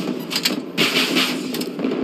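A heavy cannon fires with a loud blast.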